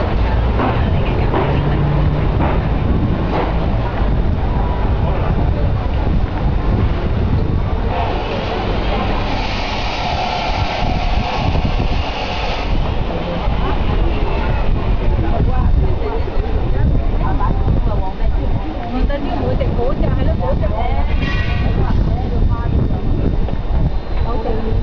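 A busy outdoor street crowd of men and women chatters all around.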